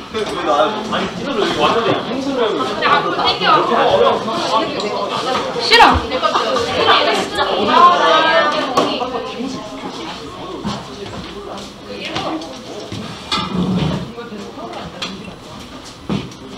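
Several young people chatter and talk excitedly nearby.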